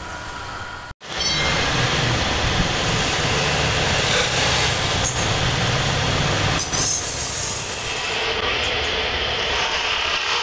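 A chisel scrapes a spinning wooden disc.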